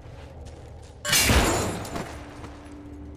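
A heavy blow strikes with a loud crunching impact.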